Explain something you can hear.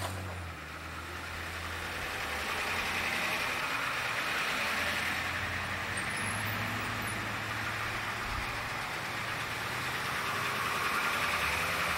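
A bus engine rumbles and idles nearby.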